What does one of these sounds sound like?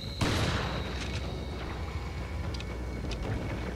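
A shotgun's pump slides back with a metallic clack.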